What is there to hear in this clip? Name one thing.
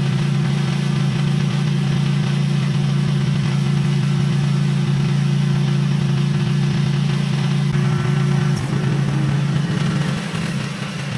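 A lawn mower engine drones steadily nearby.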